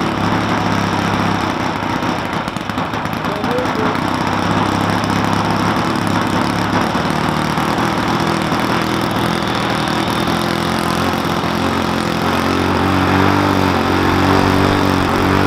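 A small model plane engine hums steadily nearby, growing louder toward the end.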